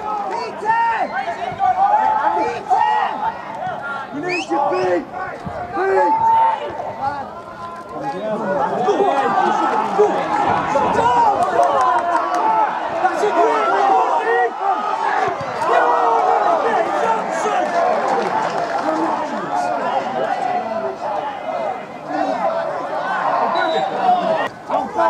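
A crowd of spectators chatters and calls out close by, outdoors.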